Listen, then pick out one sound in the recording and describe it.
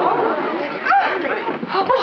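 A woman speaks loudly close by.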